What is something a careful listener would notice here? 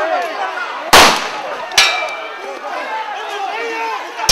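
A baton strikes with sharp thuds.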